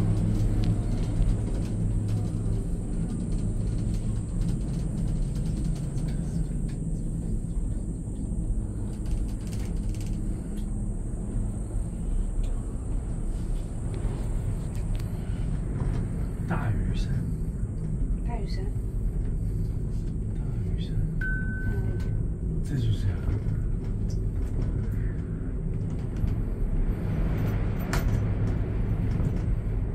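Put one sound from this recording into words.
A cable car hums and rumbles steadily as it glides along its cable.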